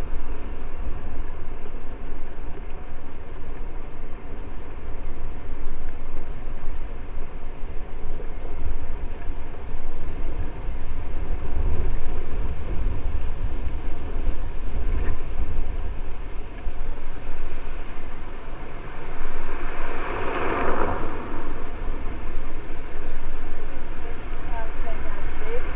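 Tyres hum and rattle over a brick road.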